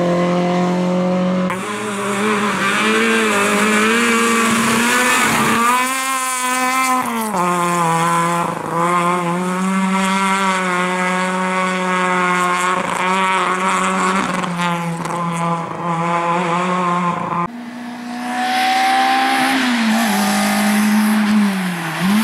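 A rally car engine roars and revs hard, rising and dropping in pitch as it shifts gears.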